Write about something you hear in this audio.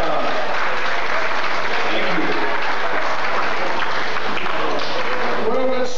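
A big band plays a lively swing tune with brass and saxophones in a large room.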